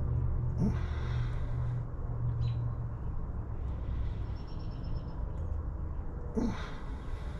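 Oil gurgles softly as it is squeezed from a bottle into a filler hole.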